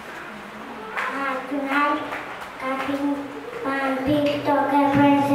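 A young girl speaks loudly into a microphone, reciting.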